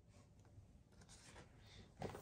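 A hand brushes softly against a paper page.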